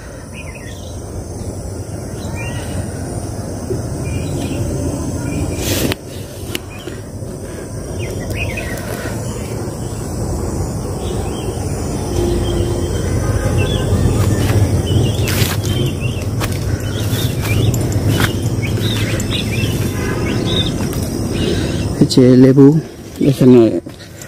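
Wind blows steadily outdoors, rustling through leaves and grass.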